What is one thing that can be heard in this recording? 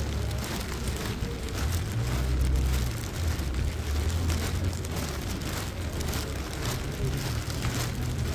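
Rain patters steadily on wet pavement outdoors.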